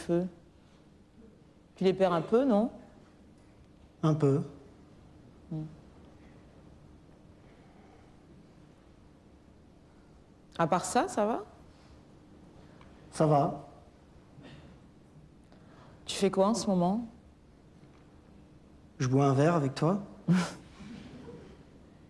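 A woman speaks calmly in short, halting phrases with long pauses.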